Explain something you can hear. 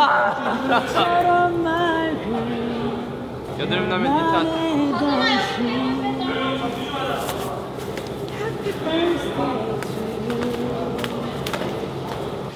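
A young man sings a song close by.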